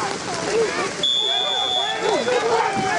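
A referee's whistle blows once in a short shrill blast.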